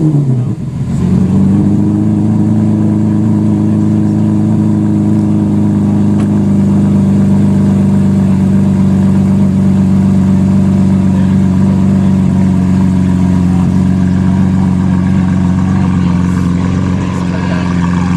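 A sports car engine idles with a deep, loud rumble.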